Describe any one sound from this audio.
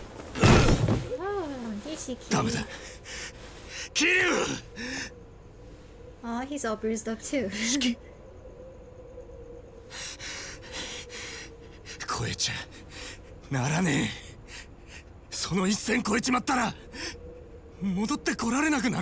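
A man shouts angrily and with emotion.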